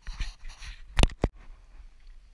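A paddle knocks against a plastic kayak hull.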